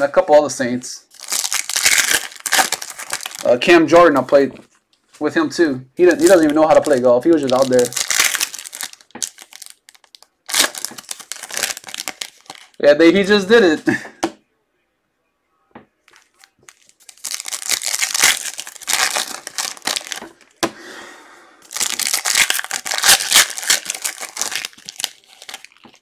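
Foil wrappers crinkle and tear as card packs are ripped open.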